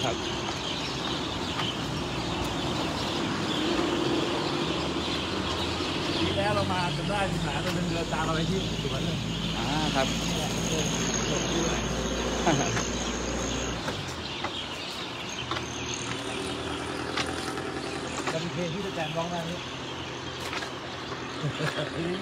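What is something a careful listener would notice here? Footsteps of a group walk on pavement.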